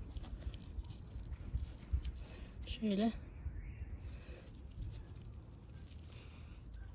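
Fingers rustle and press into loose soil.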